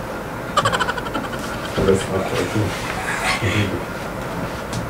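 A man laughs softly up close.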